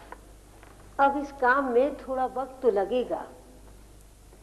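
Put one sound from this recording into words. A young woman speaks sharply nearby.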